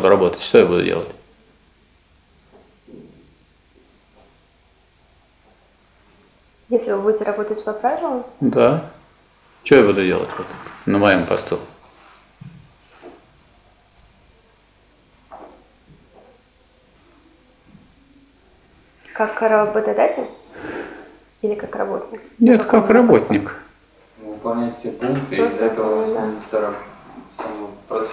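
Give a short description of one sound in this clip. A young woman speaks calmly in a room, in bursts with pauses.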